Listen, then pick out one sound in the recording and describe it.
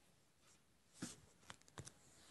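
Plastic wrap crinkles under a hand.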